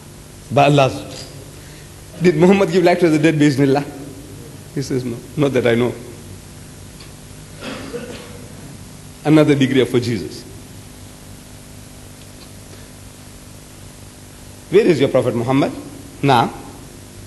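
An elderly man speaks with animation through a microphone, in bursts with pauses, in a large echoing hall.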